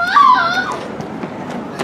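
A young girl squeals loudly close by.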